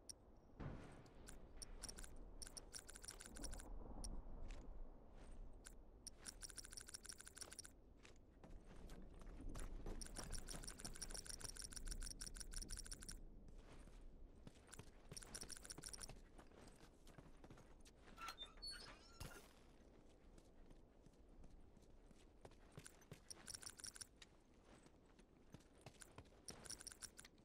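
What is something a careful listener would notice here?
Footsteps run quickly over gravel and rubble.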